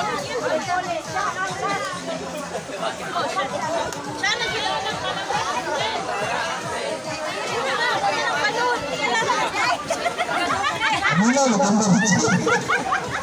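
Young women laugh and shriek excitedly close by.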